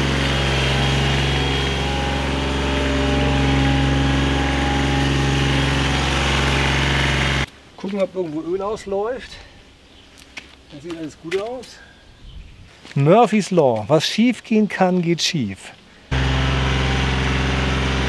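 A mower engine hums steadily.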